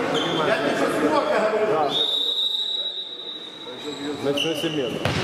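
Young men call out to each other in an echoing sports hall.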